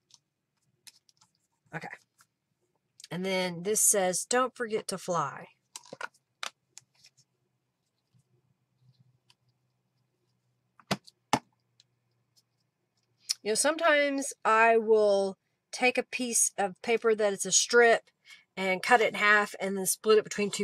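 Paper rustles and slides under hands.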